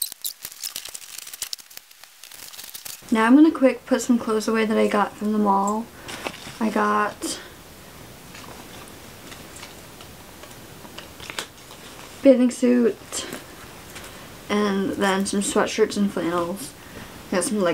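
Clothes rustle as they are handled and folded.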